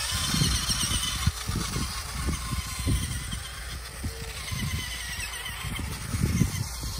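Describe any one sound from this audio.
Small electric motors whine as toy trucks drive.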